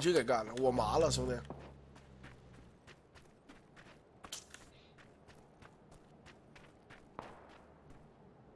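Footsteps crunch on dry ground at a running pace.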